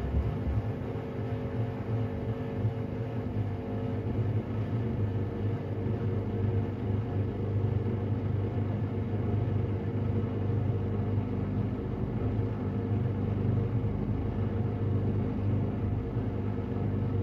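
Water sloshes inside a washing machine drum.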